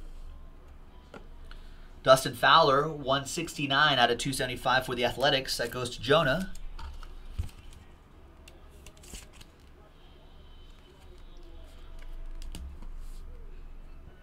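Cardboard and plastic sleeves rustle softly in hands.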